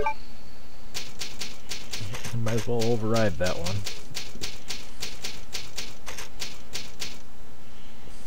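Quick typewriter clicks rattle in a fast, even run.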